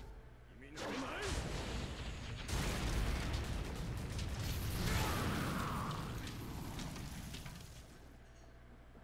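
Loud rumbling blasts and energy bursts roar from a game.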